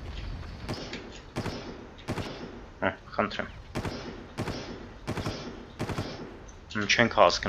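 A rifle fires in rapid single shots.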